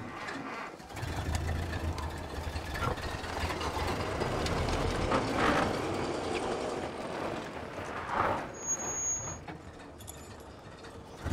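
A car engine rumbles low and steadily.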